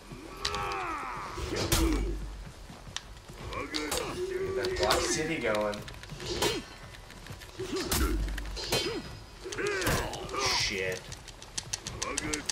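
Swords clash and strike.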